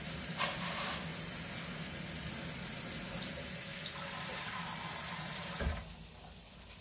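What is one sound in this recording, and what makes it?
Water bubbles and boils in a pot of pasta.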